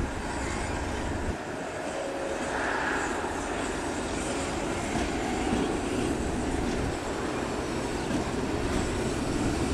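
A train rumbles slowly along the tracks toward the listener, outdoors in light wind.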